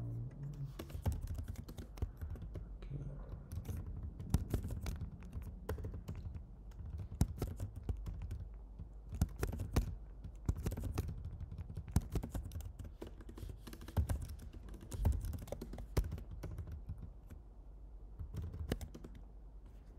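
Keyboard keys click rapidly.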